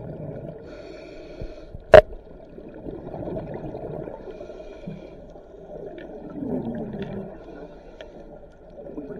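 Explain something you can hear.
Underwater, scuba bubbles rumble and gurgle.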